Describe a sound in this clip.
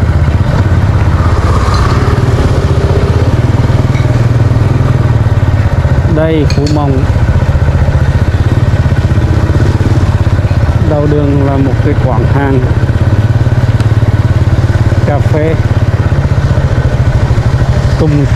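A motorbike engine hums and putters steadily close by.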